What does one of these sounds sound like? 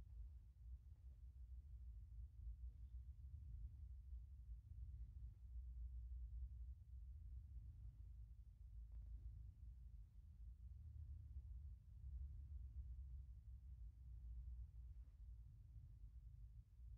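A cat purrs loudly close by.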